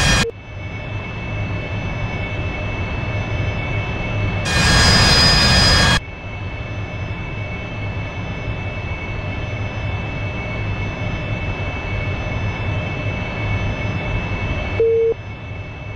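A jet engine hums steadily from inside a cockpit.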